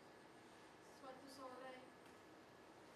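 A woman calls out a few words from a distance.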